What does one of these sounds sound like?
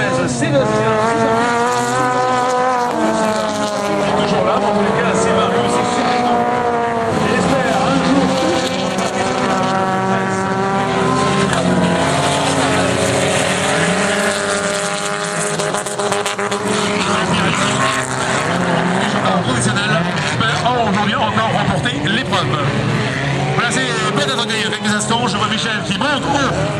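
Rally car engines roar and rev on a dirt track.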